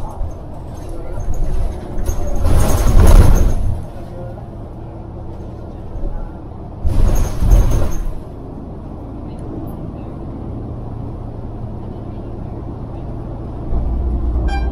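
Cars pass close by on a road, their tyres whooshing.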